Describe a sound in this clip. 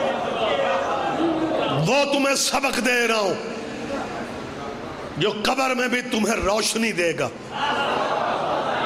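A man speaks passionately through a loudspeaker in a large echoing hall.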